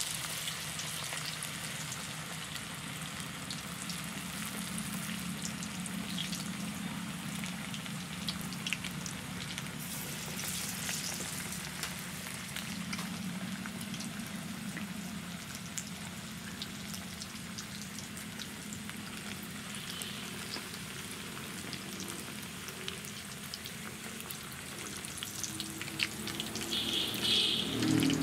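Oil sizzles and bubbles steadily in a frying pan.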